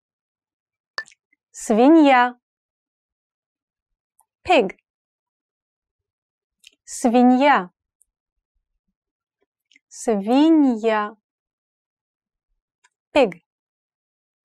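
A young woman speaks slowly and clearly into a close microphone, pausing between words.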